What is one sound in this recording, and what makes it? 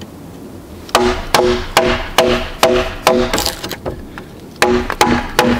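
A metal blade is knocked into wood with short, ringing taps.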